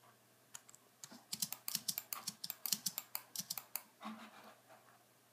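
Short soft clicks sound as blocks are placed in a game.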